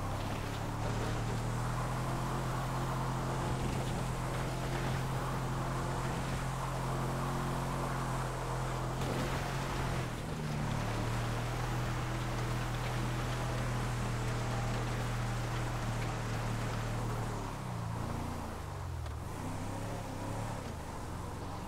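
Tyres crunch over rough gravel and brush.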